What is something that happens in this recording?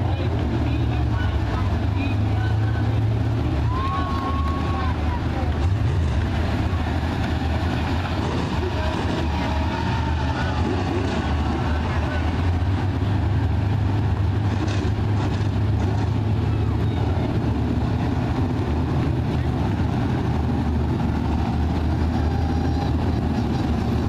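Race car engines roar loudly as cars speed around a dirt track outdoors.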